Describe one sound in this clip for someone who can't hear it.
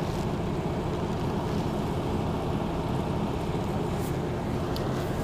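A young man talks steadily, close to a microphone.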